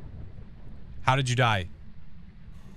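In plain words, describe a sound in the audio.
A man speaks briefly and loudly with animation, close to a microphone.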